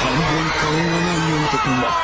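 A man cries out in fright, heard through a microphone.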